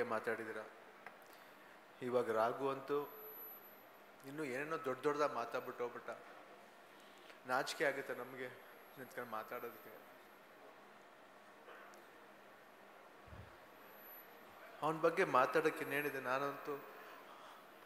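A middle-aged man speaks calmly into a microphone over a loudspeaker, with pauses.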